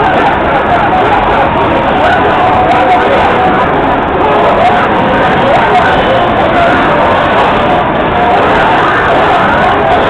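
Fighting game sound effects of punches and hits play loudly from a loudspeaker.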